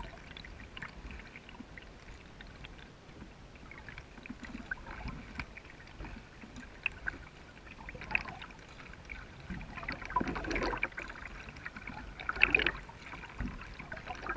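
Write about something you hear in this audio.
A kayak paddle dips and splashes in calm water.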